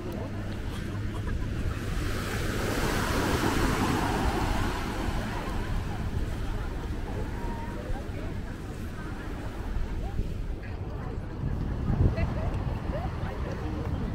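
Wind blows outdoors, rumbling in gusts.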